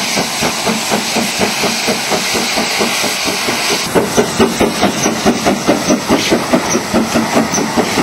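A steam locomotive chuffs rapidly as it passes close by.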